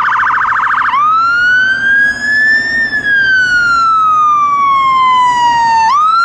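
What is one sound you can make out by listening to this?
A fire engine siren wails loudly, slowly rising and falling.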